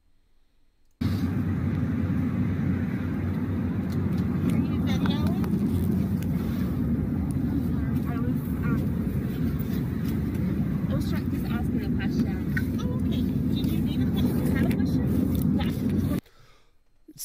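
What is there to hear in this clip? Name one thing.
A steady low roar of an aircraft cabin fills the air.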